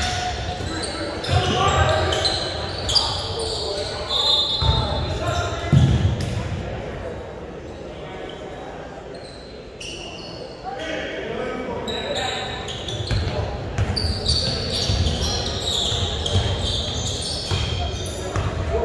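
A crowd of spectators chatters and cheers.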